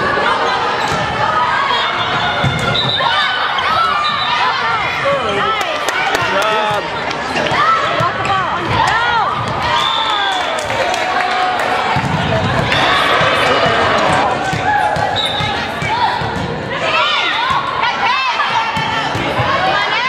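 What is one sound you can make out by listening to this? Young women shout and cheer loudly in a large echoing gym.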